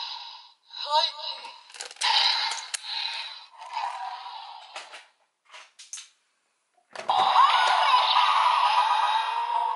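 A toy sword plays loud electronic sound effects and music from a small speaker.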